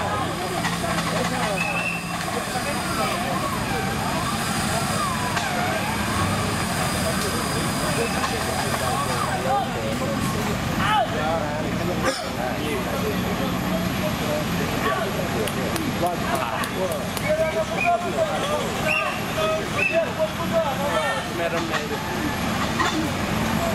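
A man shouts directions outdoors.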